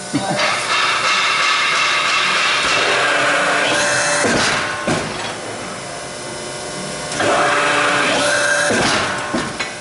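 A press brake whines loudly as its ram moves.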